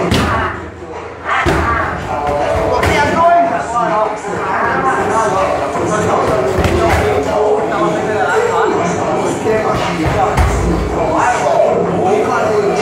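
Kicks and punches thud sharply against padded strike shields.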